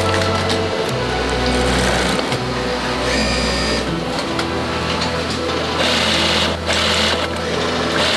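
A sewing machine whirs as it stitches.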